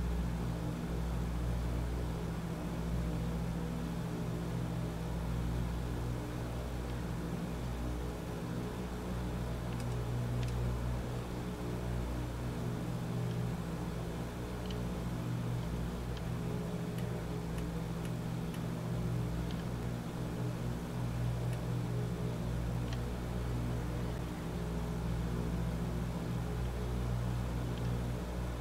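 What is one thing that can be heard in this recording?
Propeller engines drone steadily and deeply.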